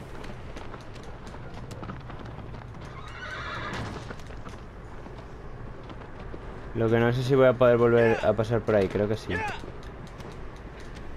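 A horse's hooves clop on rocky ground.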